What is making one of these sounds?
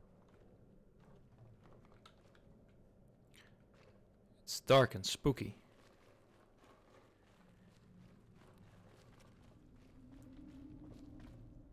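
Footsteps tread softly on stone and gravel.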